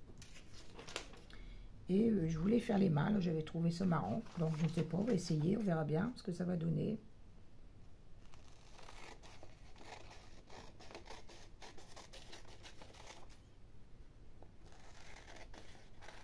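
Paper pages rustle and crinkle as they are turned and folded.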